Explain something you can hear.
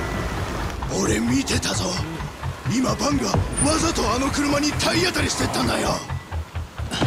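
A middle-aged man shouts with agitation nearby.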